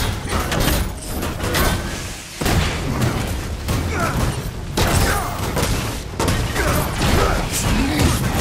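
Heavy impacts and explosions boom.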